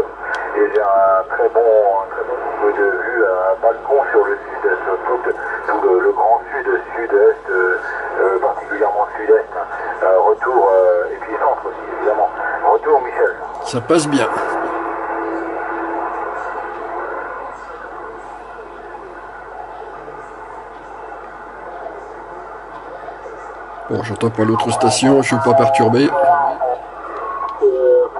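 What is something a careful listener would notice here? A man talks through a crackling radio loudspeaker.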